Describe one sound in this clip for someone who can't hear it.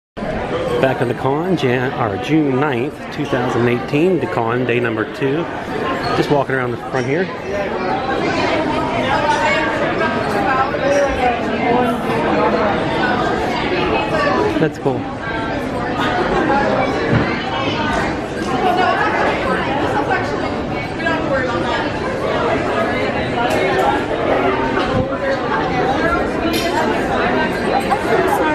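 A crowd of adults and children chatters throughout in an echoing hall.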